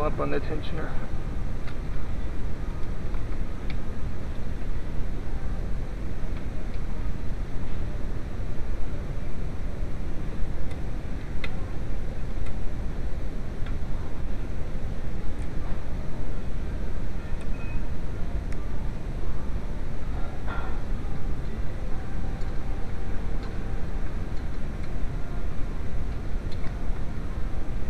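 A hand knocks and rattles lightly against engine parts.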